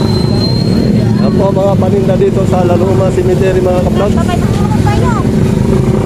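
A motorcycle idles close by.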